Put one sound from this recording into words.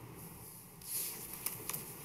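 Footsteps cross a carpeted floor in a quiet, roomy hall.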